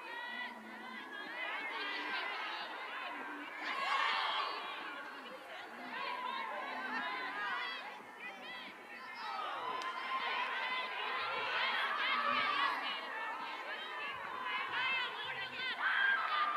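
Young players shout and call to each other across an open field in the distance.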